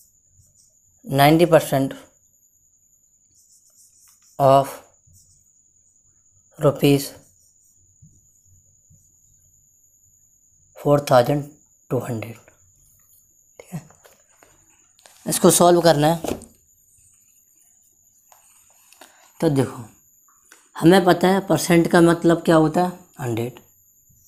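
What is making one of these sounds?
A man speaks calmly in short bursts close by.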